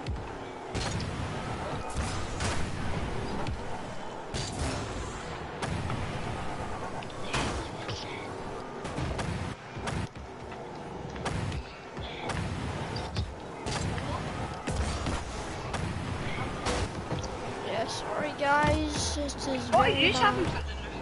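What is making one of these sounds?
A car engine roars with a rocket boost.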